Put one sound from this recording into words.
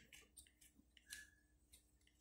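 A small electric spark crackles briefly.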